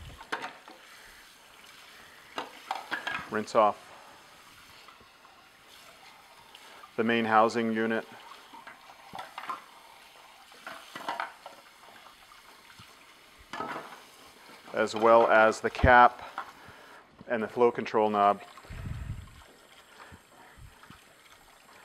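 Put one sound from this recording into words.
Plastic parts knock and clatter in a sink.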